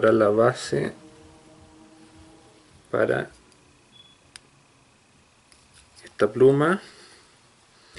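A man speaks calmly and close by, in short phrases with pauses.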